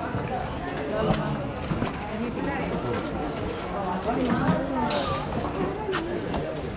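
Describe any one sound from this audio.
Several men and women talk and chatter nearby.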